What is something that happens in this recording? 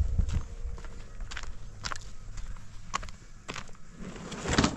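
Footsteps crunch on a stony path.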